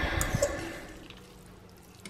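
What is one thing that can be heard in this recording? A spoon scrapes and clinks against a metal pan.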